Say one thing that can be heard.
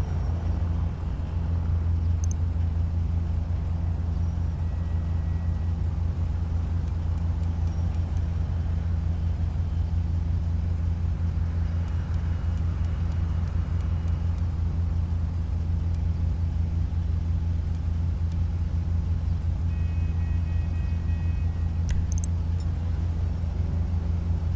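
A sports car engine idles with a deep, steady rumble.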